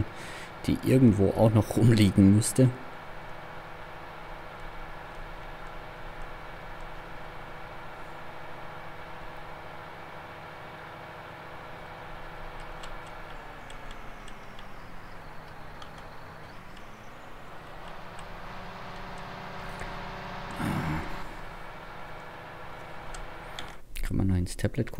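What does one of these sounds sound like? A tractor engine drones steadily, briefly dropping in pitch and then rising again.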